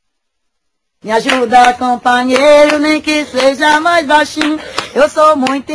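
A woman claps her hands in rhythm.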